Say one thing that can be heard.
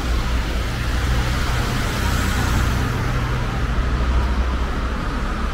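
A bus engine rumbles close by and pulls away.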